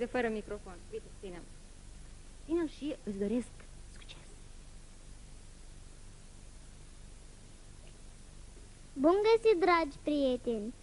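A young boy speaks softly into a microphone.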